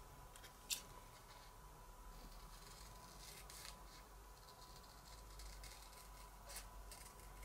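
Scissors snip through thin card with short crisp cuts.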